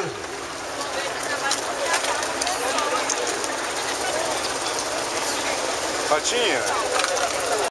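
A crowd of men and women shouts and cheers loudly close by.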